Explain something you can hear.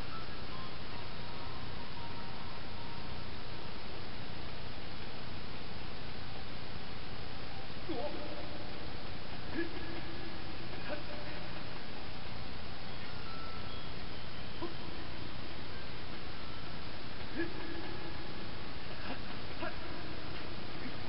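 Video game music plays softly through a television speaker.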